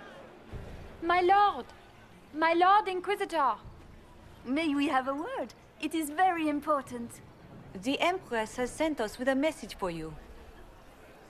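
Several young women talk with animation, close by.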